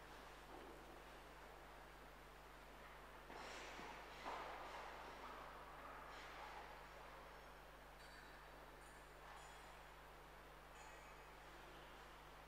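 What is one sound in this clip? A man murmurs quietly, distant in a large echoing hall.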